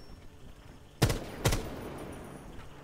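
A rifle fires a few sharp shots close by.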